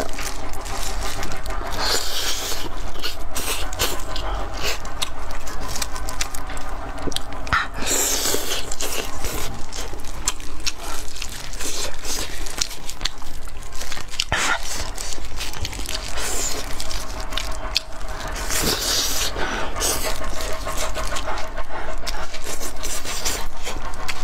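A young woman chews meat loudly with wet smacking sounds.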